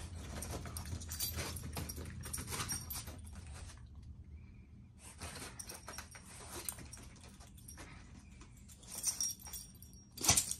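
Small dogs scuffle and play-fight, their paws scratching and thumping.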